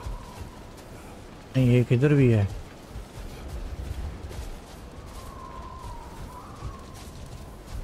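Heavy footsteps crunch on snow.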